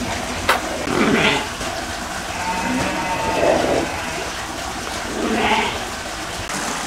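Goats bleat nearby.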